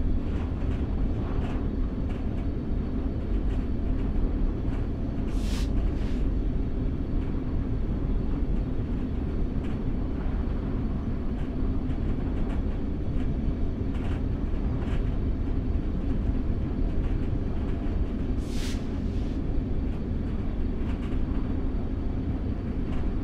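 Train wheels click and clack over rail joints.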